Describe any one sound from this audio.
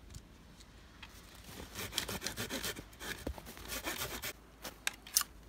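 A hand saw cuts through a branch with rasping strokes.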